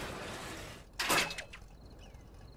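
A vehicle crashes and tips over with a loud thud.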